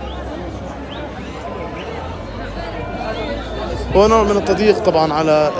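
A crowd of men and women talk at once outdoors.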